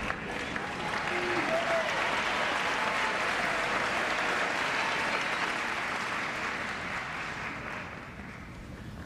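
A crowd applauds loudly in a large hall, then fades.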